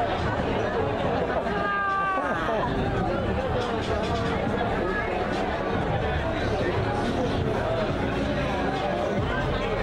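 A crowd of people chatters loudly all around.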